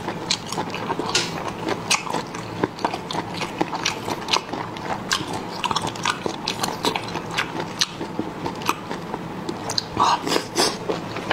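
A man chews food wetly and noisily close to a microphone.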